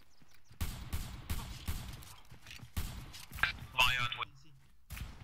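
A rifle fires sharp, loud shots one after another.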